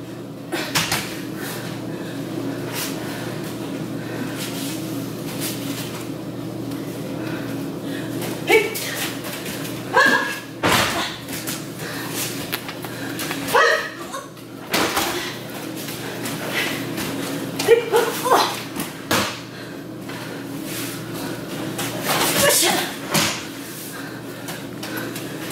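Bare feet shuffle and slap on a mat.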